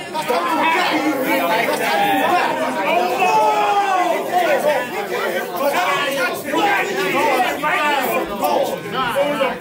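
A crowd of men murmurs and calls out in the background.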